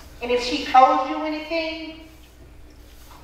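A woman sings out loudly in a reverberant hall.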